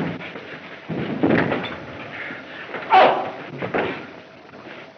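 Fists thud as men scuffle in a fistfight.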